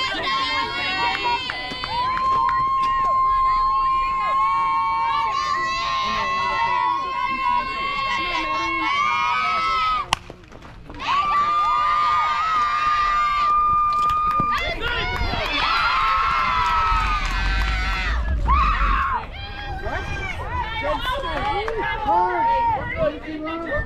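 Players and spectators shout and cheer loudly outdoors.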